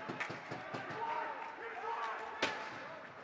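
A crowd of spectators talks and calls out in an echoing rink.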